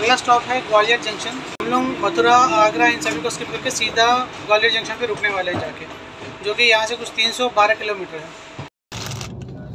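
A man talks close up, with animation.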